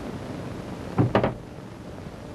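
A switch clunks.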